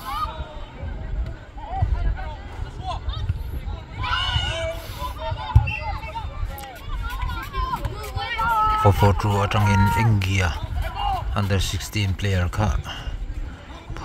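Boys shout and call out across an open outdoor field.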